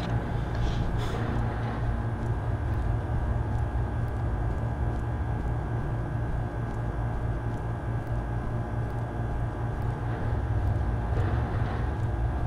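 A young man talks quietly.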